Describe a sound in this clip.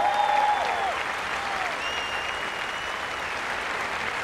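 People in a crowd whistle shrilly.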